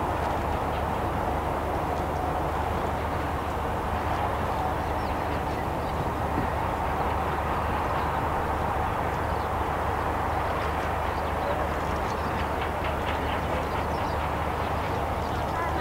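A truck engine rumbles as the truck drives slowly past.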